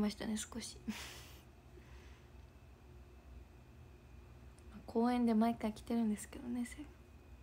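A young woman speaks close to a microphone in a soft, casual voice.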